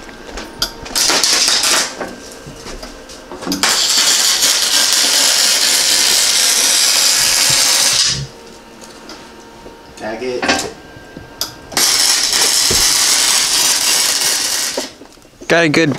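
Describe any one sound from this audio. A welding torch crackles and hisses loudly in bursts.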